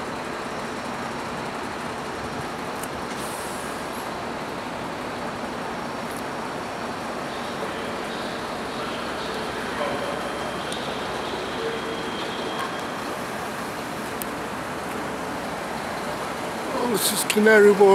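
Wind blows steadily across the microphone outdoors.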